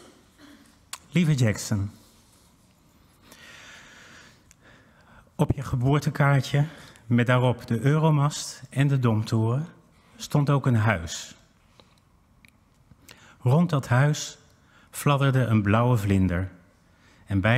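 A man speaks slowly through a microphone in a large hall, with long pauses.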